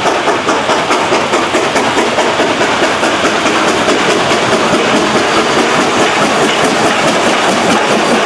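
A steam locomotive chugs loudly in rapid, even puffs as it passes close by.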